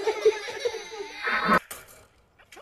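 A toddler cries loudly close by.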